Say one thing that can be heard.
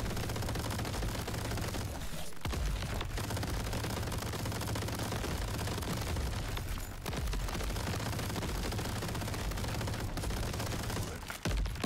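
Rapid gunfire rattles with electronic zaps.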